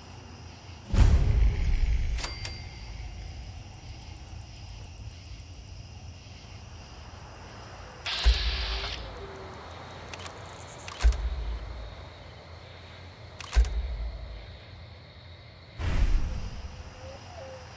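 Heavy gunshots boom one at a time, each with a rumbling echo.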